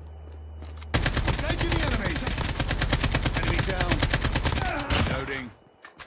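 Rapid gunfire rattles loudly in quick bursts.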